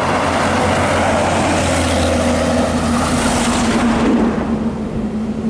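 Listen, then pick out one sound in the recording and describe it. A heavy truck engine rumbles past close by.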